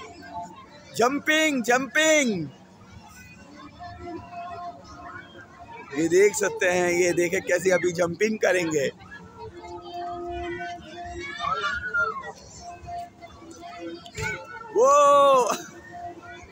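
Young children squeal and shout excitedly close by.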